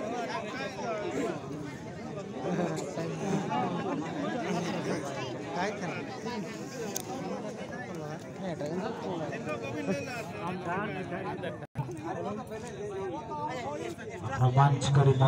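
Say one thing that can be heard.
A crowd of young men chatters and calls out outdoors.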